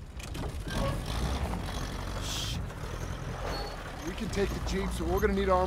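A jeep engine runs as the jeep drives off.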